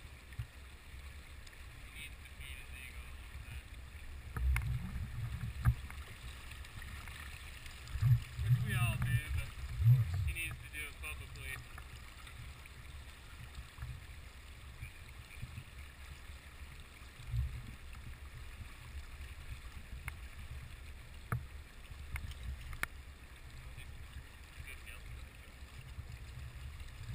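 A river flows and splashes close by.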